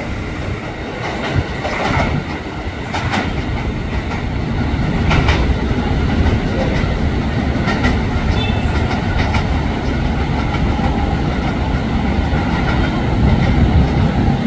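An electric commuter train pulls away, its wheels rumbling on the rails.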